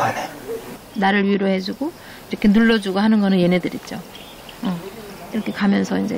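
An elderly woman speaks calmly close by.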